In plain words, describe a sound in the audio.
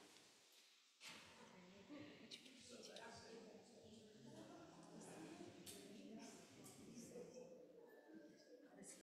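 A crowd of people murmurs and chats quietly.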